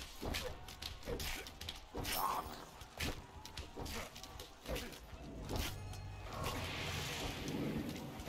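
Blades whoosh and clang in quick slashes.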